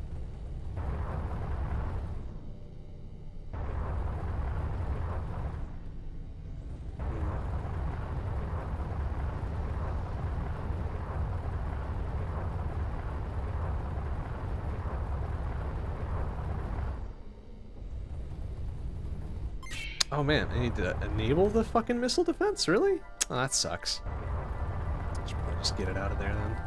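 A steady low rumble of a spaceship engine drones.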